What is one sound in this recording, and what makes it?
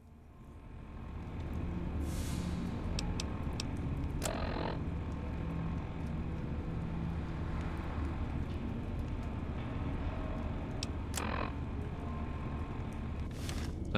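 Short electronic clicks sound as menu tabs switch.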